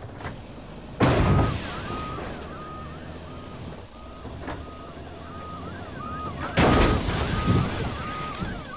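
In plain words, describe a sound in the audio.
A truck crashes into a vehicle with a loud bang.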